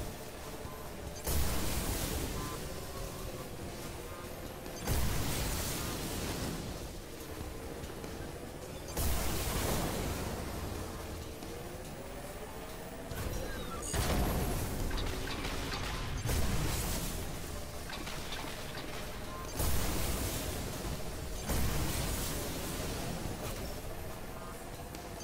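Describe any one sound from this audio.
A racing craft's engine whines steadily throughout.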